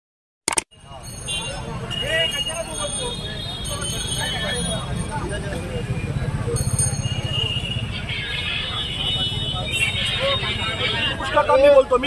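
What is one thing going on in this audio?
A crowd of men talks loudly outdoors.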